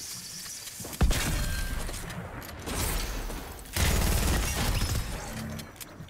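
Video game gunshots crack in short bursts.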